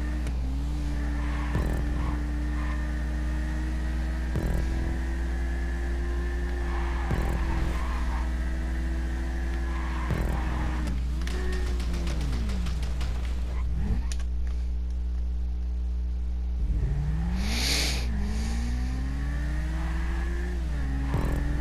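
A motorcycle engine revs steadily at high speed, its pitch rising and falling with gear changes.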